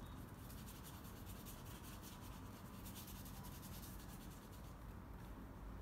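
A paintbrush swishes softly across paper.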